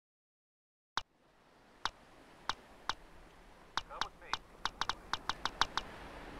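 Short electronic menu clicks sound as selections change, one after another.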